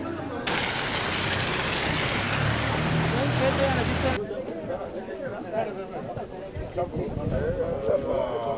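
A crowd of men and women talk outdoors at a distance.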